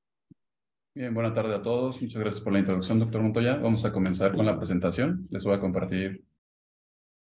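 A younger man speaks steadily over an online call.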